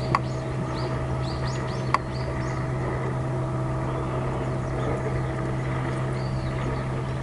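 Water laps gently against a pier outdoors.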